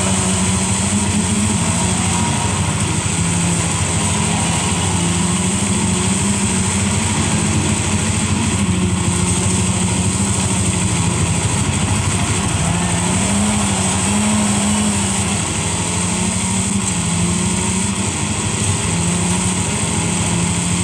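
A game car's engine drones and revs through a loudspeaker.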